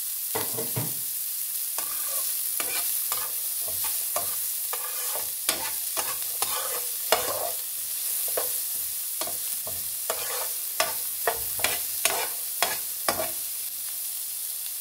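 Onions sizzle in hot oil in a frying pan.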